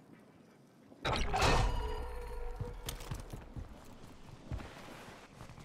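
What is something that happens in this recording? A gun is handled with a sharp metallic clatter.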